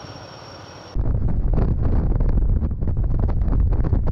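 Strong wind roars and buffets against the microphone.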